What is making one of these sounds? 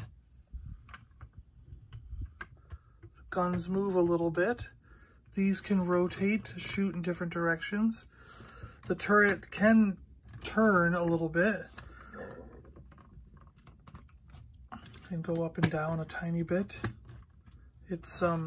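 Plastic toy parts click and rattle as hands move them.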